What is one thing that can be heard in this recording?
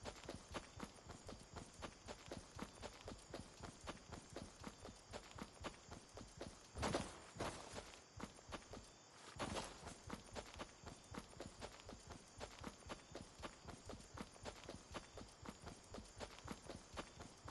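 Footsteps patter quickly and steadily on grass.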